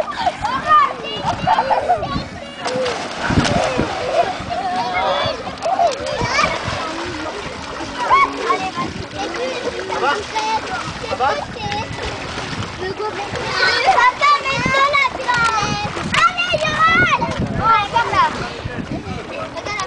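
Children shriek and shout excitedly close by.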